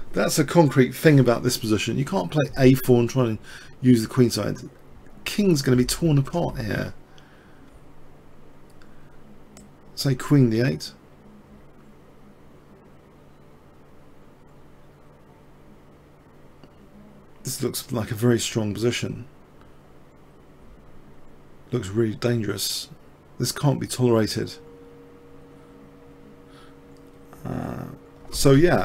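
A man talks calmly into a close microphone, with pauses.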